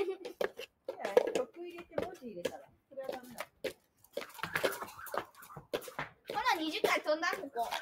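Young girls talk and call out excitedly nearby, outdoors.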